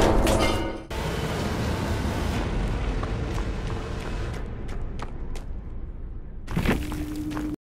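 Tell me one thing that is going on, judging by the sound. Footsteps run through grass.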